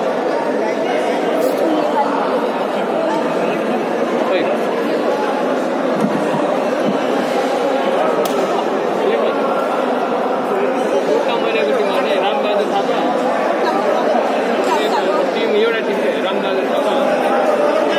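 A crowd of men and women chatters throughout in a large echoing hall.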